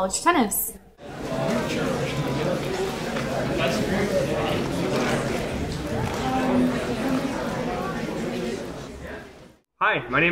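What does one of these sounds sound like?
Footsteps echo along a hallway.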